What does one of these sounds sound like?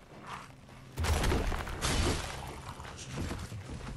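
A heavy weapon swings and strikes with a loud crash.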